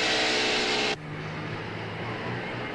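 Traffic rumbles along a road.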